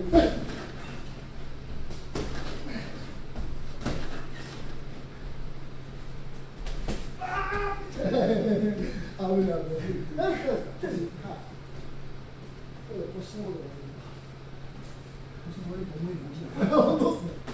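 Boxing gloves thud sharply against punch mitts.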